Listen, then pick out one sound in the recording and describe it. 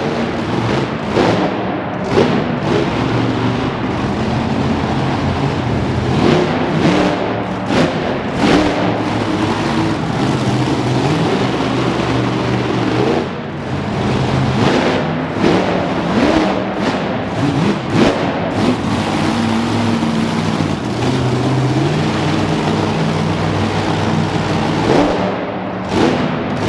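Metal crunches as a monster truck crushes cars.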